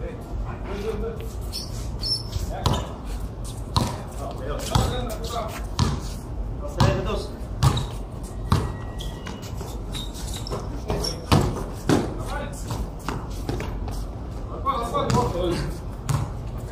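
Sneakers squeak and scuff on the court.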